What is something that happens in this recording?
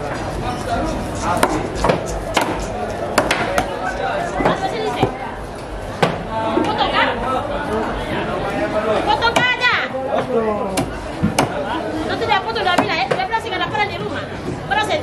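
A knife chops through fish on a wooden board with sharp knocks.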